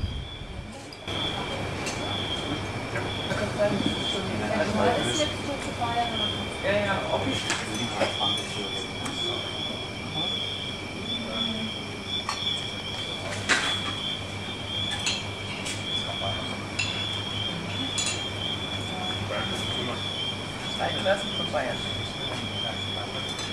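Cutlery and plates clink.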